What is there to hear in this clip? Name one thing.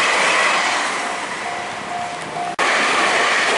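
A railway crossing bell rings in steady pulses.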